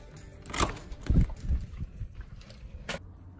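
A door handle rattles.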